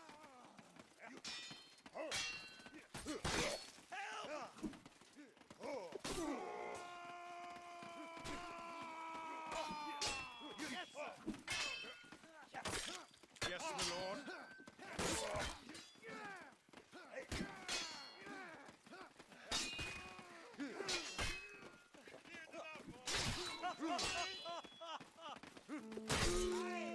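Metal swords clash and ring sharply again and again.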